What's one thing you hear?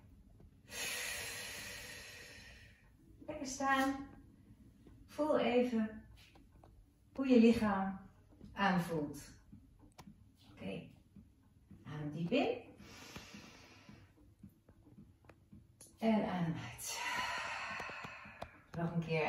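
A woman breathes in and out deeply and slowly.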